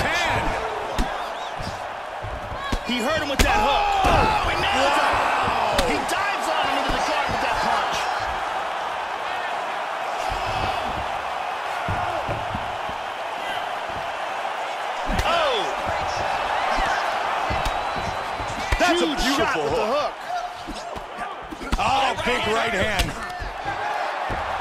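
Punches and kicks land with heavy thuds.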